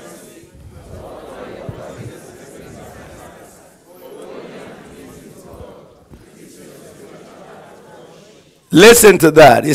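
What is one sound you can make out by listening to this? A large crowd murmurs and responds softly in a big hall.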